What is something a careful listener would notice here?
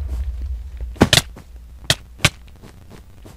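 A sword strikes a character in quick hits.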